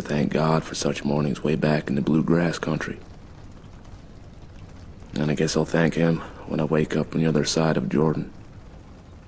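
A man speaks slowly and calmly, close up.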